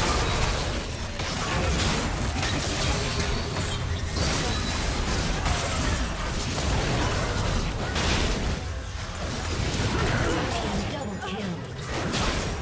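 Video game spells crackle and burst in a hectic fight.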